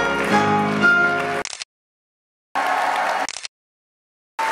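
A piano plays a lively tune.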